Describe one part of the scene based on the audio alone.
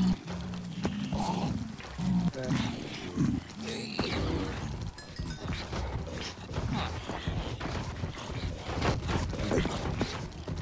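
Zombies groan and moan repeatedly.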